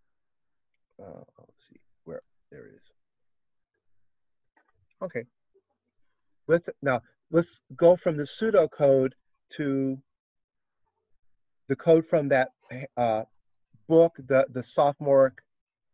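A man speaks calmly and close to a computer microphone.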